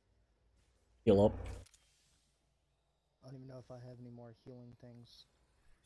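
A medical syringe is injected with a short hiss.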